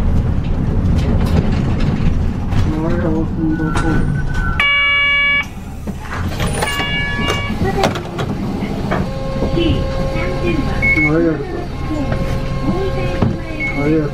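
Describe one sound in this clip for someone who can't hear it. A diesel city bus rumbles as it drives along a road.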